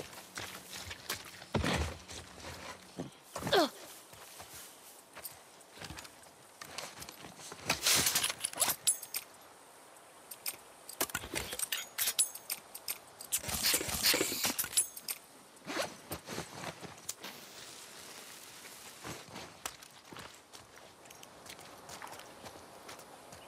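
Footsteps squelch through wet grass and mud.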